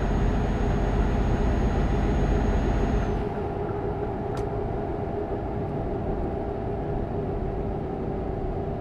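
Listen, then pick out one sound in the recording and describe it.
Tyres roll with a steady roar on a road.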